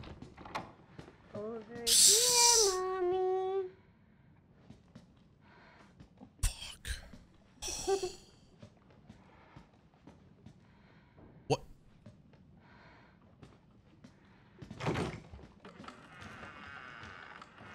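A man talks quietly into a close microphone.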